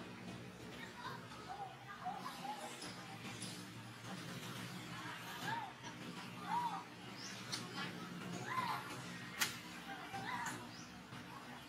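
Monkeys chirp and squeak in short high calls.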